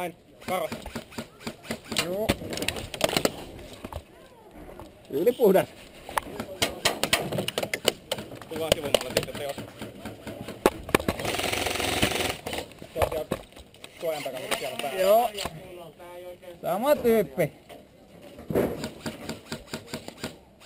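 An airsoft gun fires sharp pops close by.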